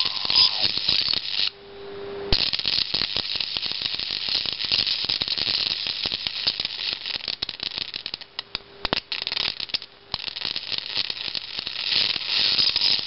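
A high-voltage arc from a flyback transformer crackles and buzzes in short bursts.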